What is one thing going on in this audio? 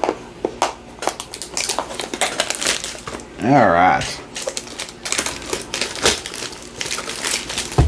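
Plastic wrap crinkles and rustles as hands peel it away.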